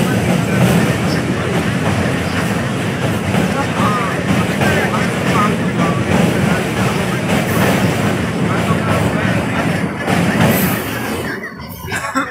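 A passenger train rumbles along the tracks.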